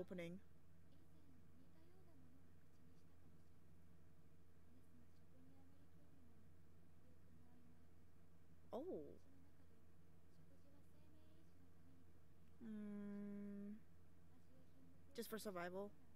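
A young woman makes short vocal sounds close to a microphone, now and then.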